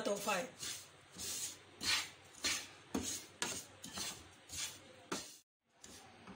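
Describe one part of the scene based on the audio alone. A wooden spoon scrapes and stirs dry crumbs in a frying pan.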